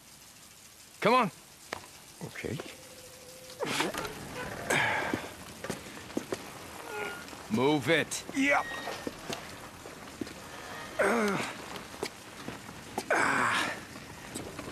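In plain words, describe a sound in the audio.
A young man speaks in short bursts.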